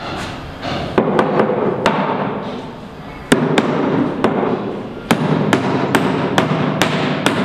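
A hammer taps sharply on a wooden crate, again and again.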